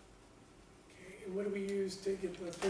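A man speaks clearly, lecturing in a room.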